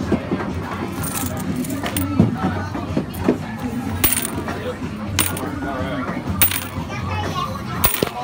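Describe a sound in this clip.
Coins jingle and clink in a plastic cup.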